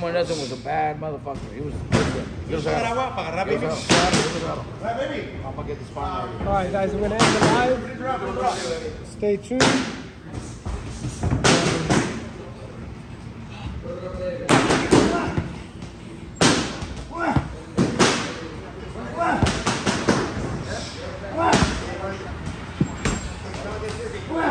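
Thuds and knocks ring out in a large echoing room.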